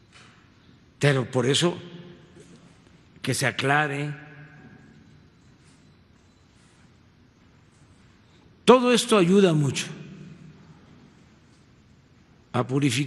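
An elderly man speaks into a microphone in short bursts, with pauses.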